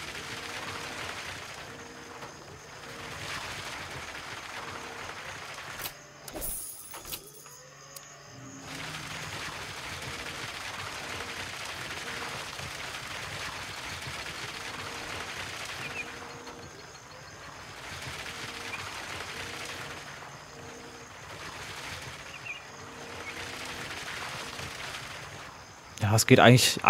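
A crane engine hums and drones.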